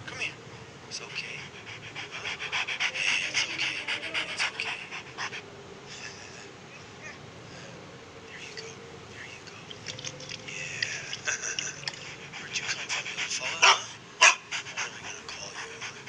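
A dog pants rapidly nearby.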